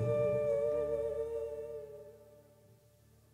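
A band plays music on stage, then stops.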